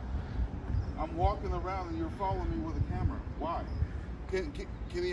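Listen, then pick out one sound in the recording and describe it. A man talks calmly nearby, outdoors.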